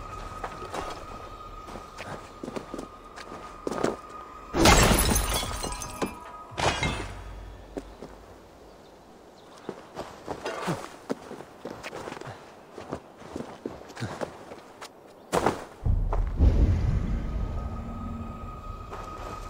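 Footsteps crunch on grass and rock.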